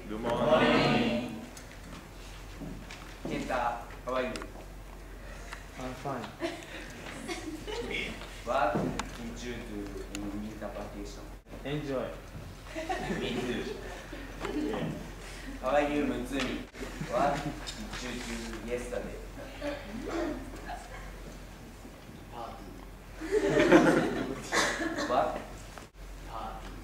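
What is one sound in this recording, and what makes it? A young man speaks to an audience in a room with some echo.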